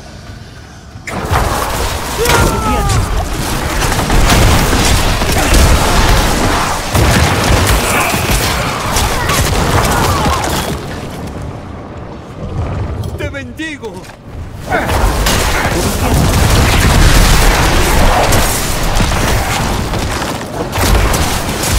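Magic blasts and impacts crash and rumble loudly in a game battle.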